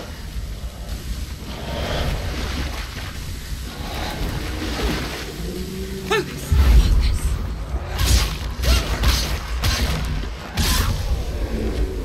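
Swords clash and strike with sharp metallic hits.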